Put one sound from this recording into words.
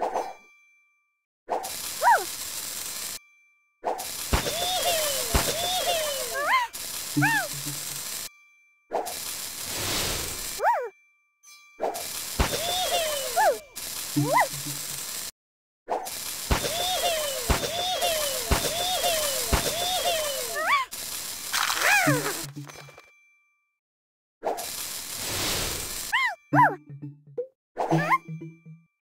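Playful chimes and popping effects sound as pieces match and clear in a puzzle game.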